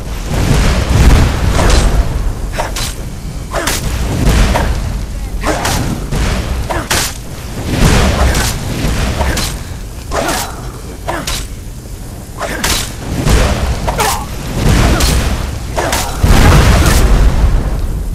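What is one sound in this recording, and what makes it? Weapons clash and strike hard against armour.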